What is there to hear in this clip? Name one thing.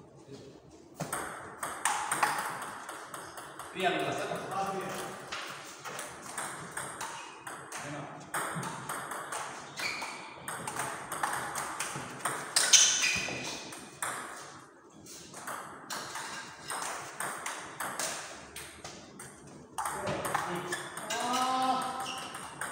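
Table tennis balls click rapidly on paddles and tables in an echoing hall.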